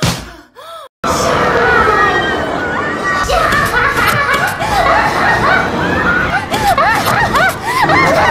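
A crowd of people screams on a swinging fairground ride.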